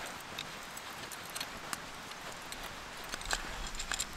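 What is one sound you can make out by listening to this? A metal chain rattles softly.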